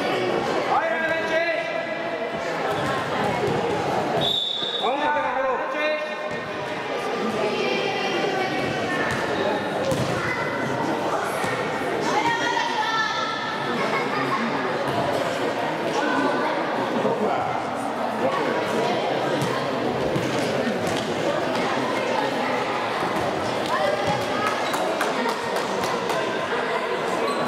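Young girls shout and call out across a large echoing hall.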